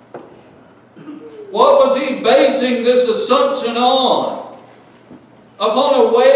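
A man speaks forcefully into a microphone, with pauses.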